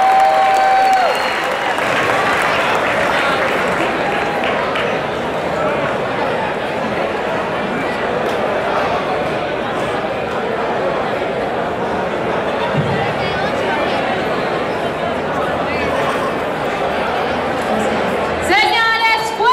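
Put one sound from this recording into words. A crowd cheers and chatters loudly.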